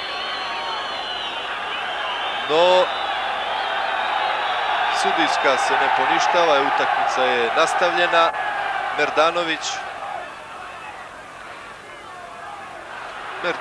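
A large stadium crowd roars and cheers, swelling and then dying down.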